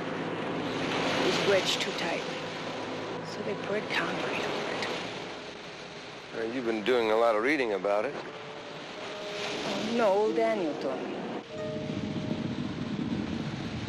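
Sea waves wash against rocks.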